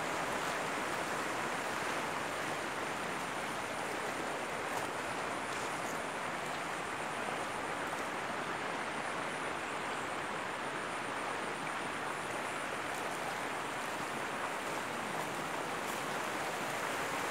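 River water rushes over a low weir.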